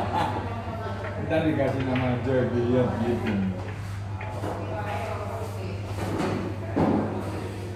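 Pool balls clack together as they are gathered into a rack.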